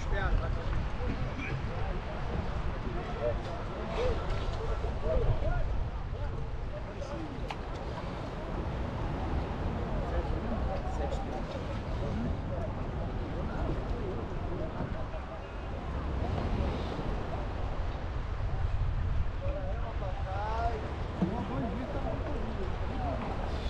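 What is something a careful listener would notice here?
Water laps and splashes against a boat's hull.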